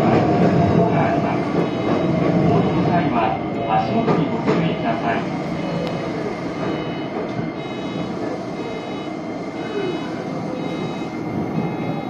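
Train brakes squeal as the train slows.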